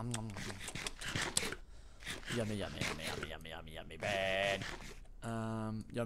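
A character munches food in quick crunchy bites.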